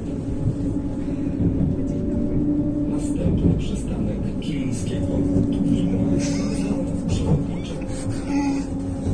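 A tram motor hums steadily while the tram rolls along.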